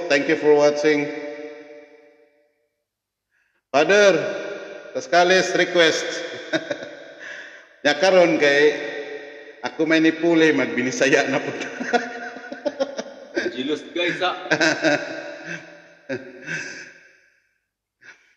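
A middle-aged man sings close into a microphone, with a long echo trailing his voice.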